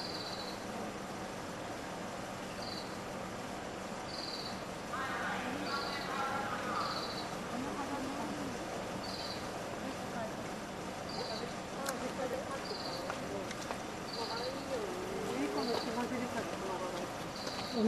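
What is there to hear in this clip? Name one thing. A railway crossing bell rings steadily and repeatedly.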